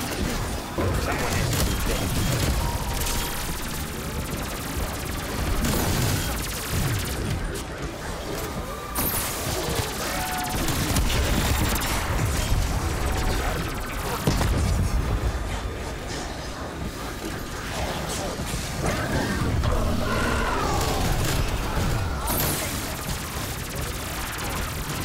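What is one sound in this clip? Guns fire rapidly in bursts.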